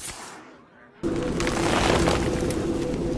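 A card game plays a loud, rushing magical sound effect.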